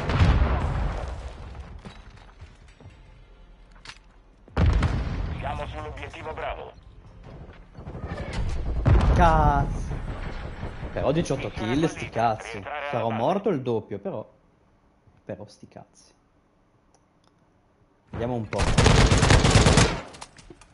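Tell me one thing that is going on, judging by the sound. Gunfire bursts in quick rattling rounds.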